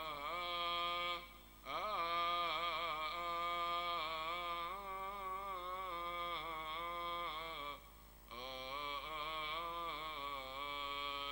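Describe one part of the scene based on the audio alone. An elderly man chants slowly through a microphone in a large echoing hall.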